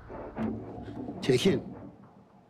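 An older man speaks cheerfully, close by.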